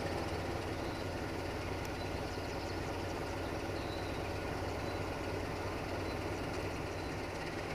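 A diesel locomotive engine rumbles steadily as it approaches.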